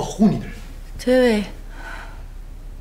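A young woman says a short word quietly nearby.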